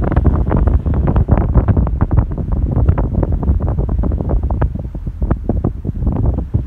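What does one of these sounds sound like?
Strong wind blows outdoors, buffeting and rumbling loudly.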